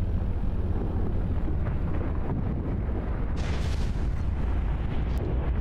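A low engine hum drones steadily underwater.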